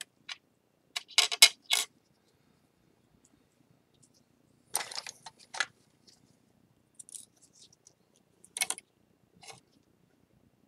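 Small metal tools scrape and clink against a tray.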